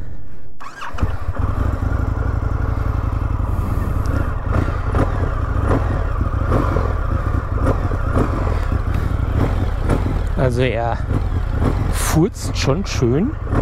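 A motorcycle engine roars steadily while riding.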